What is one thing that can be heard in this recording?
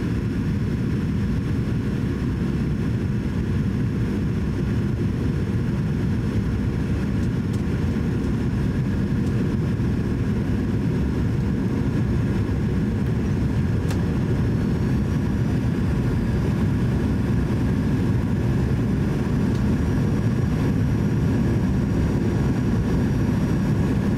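Aircraft engines roar steadily in a low, even drone.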